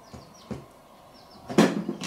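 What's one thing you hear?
A spoon clinks against a plastic bowl.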